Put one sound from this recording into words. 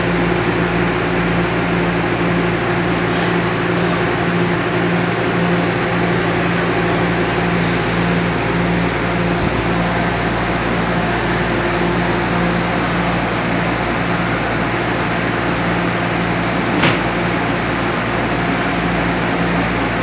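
A train idles with a steady low hum in an echoing underground station.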